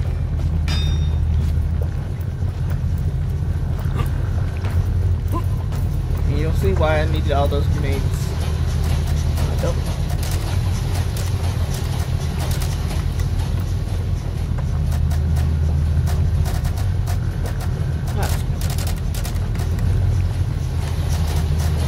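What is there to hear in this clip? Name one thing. A machine hums with a steady low drone.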